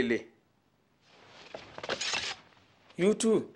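Knives scrape against each other.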